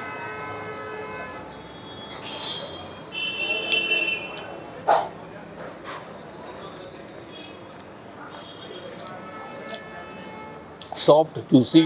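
A man chews food with his mouth close to a microphone.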